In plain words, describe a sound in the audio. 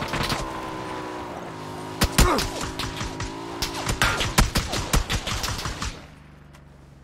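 A motorcycle engine roars and revs nearby.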